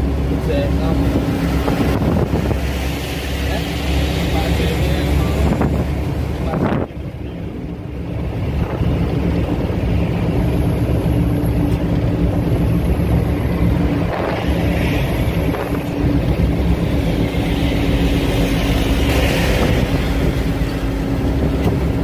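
Tyres roar on the highway.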